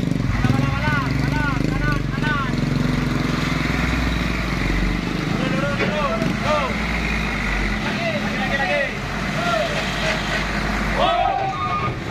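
A heavy truck engine idles with a deep, steady rumble.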